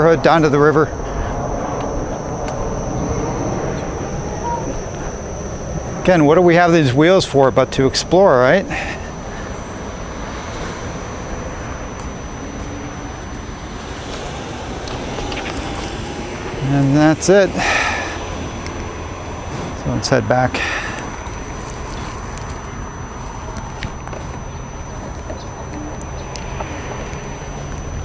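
A single wheel hums as it rolls over pavement.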